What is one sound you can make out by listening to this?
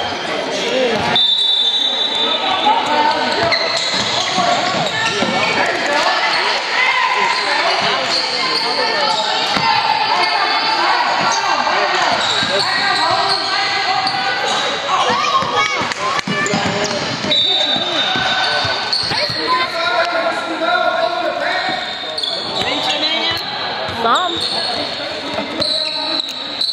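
Spectators talk and shout in a large echoing gym.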